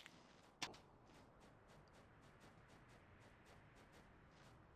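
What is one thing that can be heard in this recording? Quick, soft footsteps patter steadily.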